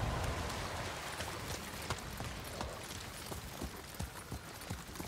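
A horse's hooves thud on the ground.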